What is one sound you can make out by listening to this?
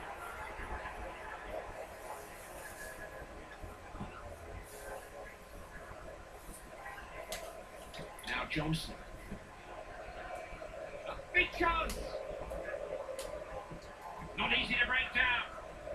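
A stadium crowd murmurs steadily through a small television speaker.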